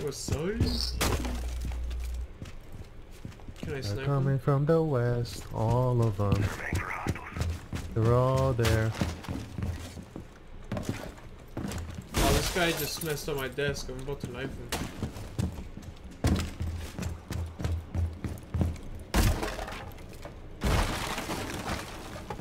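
A wooden barricade splinters and cracks under heavy blows.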